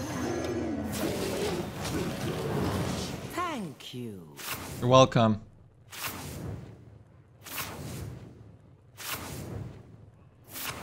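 Video game sound effects whoosh and burst.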